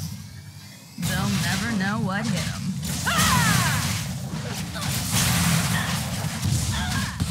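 Game combat effects whoosh and clash as a fighter strikes a monster.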